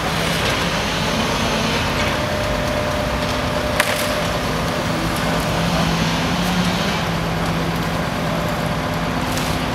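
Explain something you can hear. A heavy machine engine hums and drones steadily.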